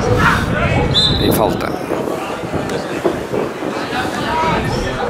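Young men shout and call out across an outdoor field.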